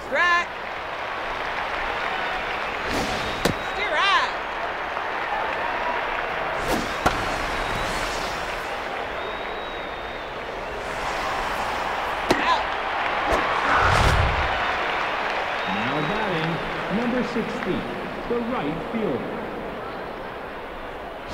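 A large crowd murmurs and cheers steadily in a stadium.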